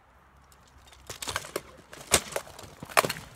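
Weapons clash against armour and shields in sharp metallic strikes.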